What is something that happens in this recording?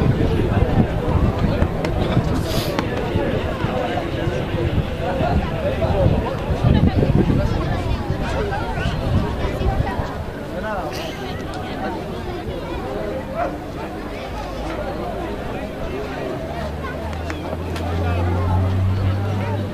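A crowd of spectators chatters and calls out in the distance, outdoors.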